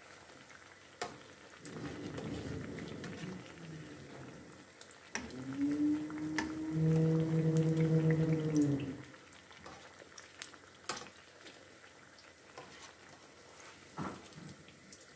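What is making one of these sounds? A metal spatula clicks and scrapes against a pan.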